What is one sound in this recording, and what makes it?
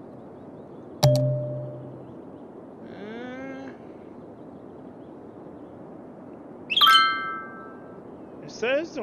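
A soft electronic interface chime sounds twice.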